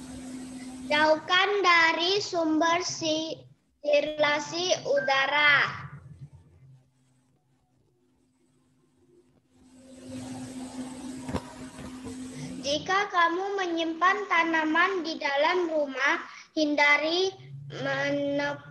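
A young boy speaks with animation through an online call.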